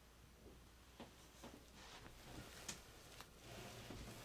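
A paper towel rustles and crinkles.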